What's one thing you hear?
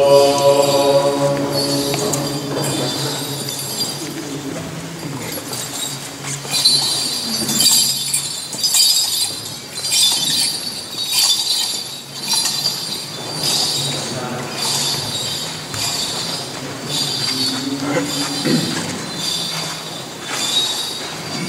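A group of men chant together in slow, sustained tones.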